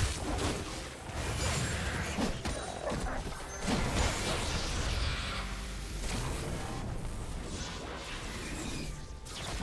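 Game battle effects whoosh and crackle with spell impacts.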